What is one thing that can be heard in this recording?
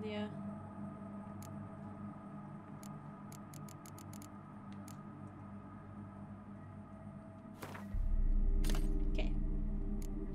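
Soft menu clicks tick several times.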